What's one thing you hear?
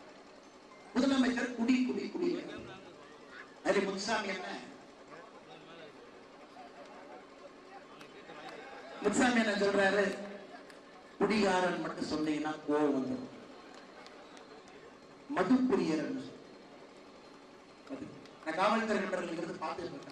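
A man speaks forcefully into a microphone over a loudspeaker, in bursts with pauses.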